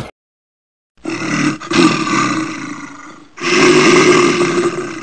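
Water sprays hard from a hose onto a bear.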